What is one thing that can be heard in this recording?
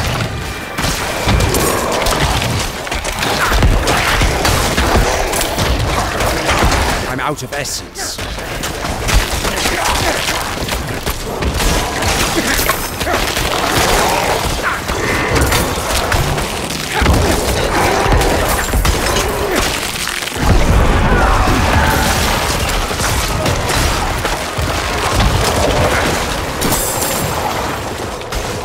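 Weapons strike monsters with heavy thuds.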